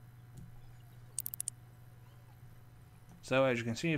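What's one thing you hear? A fishing reel clicks as a rod is lifted.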